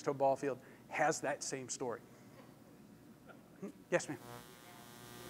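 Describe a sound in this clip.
A middle-aged man speaks with animation through a clip-on microphone.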